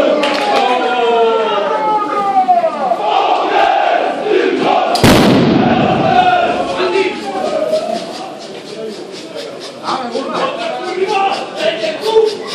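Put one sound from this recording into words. A crowd of men sings and chants loudly in an echoing underpass.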